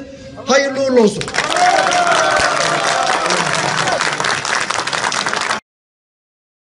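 A crowd chants and cheers.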